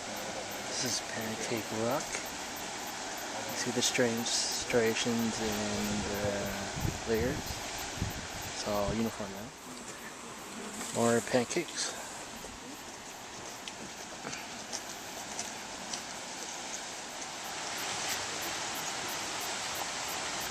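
Sea waves wash and break against rocks.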